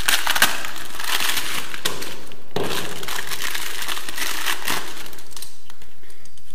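Plastic packaging crinkles and rustles in someone's hands.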